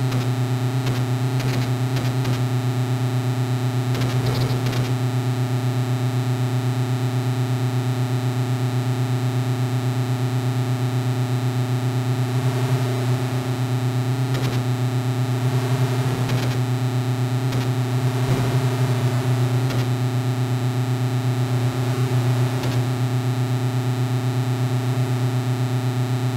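A chiptune tank engine buzzes steadily with a low drone.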